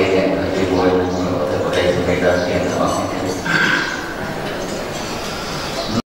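A group of men chant together in a low, steady drone, heard in a large room.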